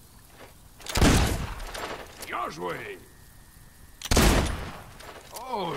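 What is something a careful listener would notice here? A musket fires with a loud boom that echoes away.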